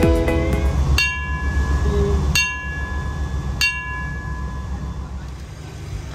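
A brass bell rings loudly several times and rings on.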